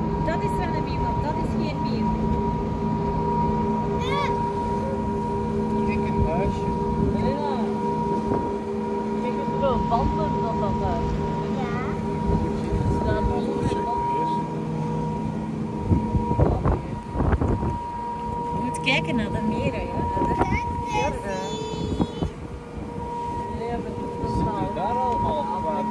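Wind blusters across the water.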